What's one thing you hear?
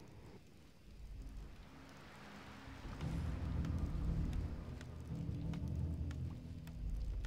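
Sea waves wash and roll steadily.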